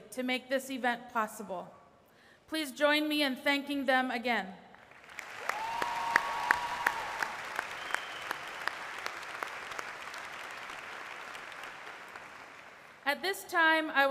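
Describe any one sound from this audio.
A woman speaks calmly into a microphone in a large echoing hall.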